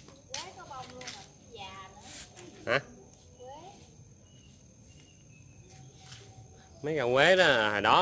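Leaves of a bush rustle as a woman handles them.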